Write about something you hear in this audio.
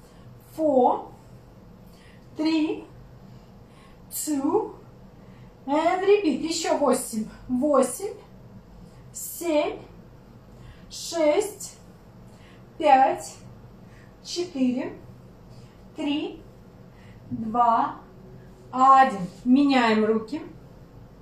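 A young woman speaks nearby in short, lively bursts with pauses.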